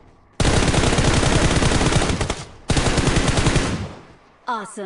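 A rifle fires rapid bursts at close range.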